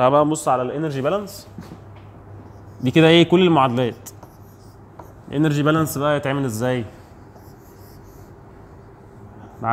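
A marker squeaks as it writes on a board.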